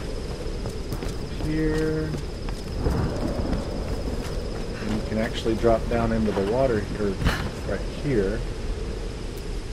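Footsteps tread on stone and wood.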